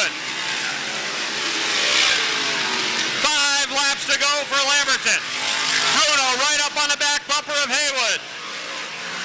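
Race car engines roar loudly as cars speed past on a track.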